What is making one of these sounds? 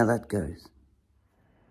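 A man speaks briefly, very close by.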